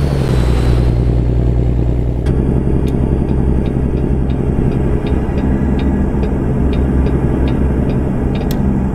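A diesel semi-truck engine drones while cruising on a highway.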